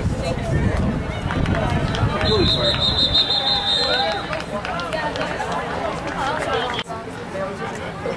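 A crowd of players and spectators call out and chatter outdoors.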